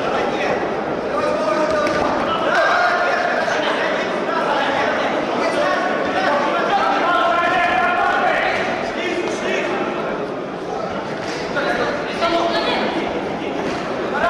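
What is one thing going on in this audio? A crowd of spectators talks and shouts in an echoing hall.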